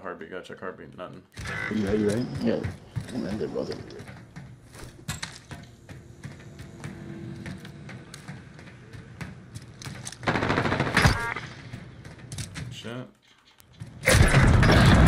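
Footsteps clatter on a hard metal floor.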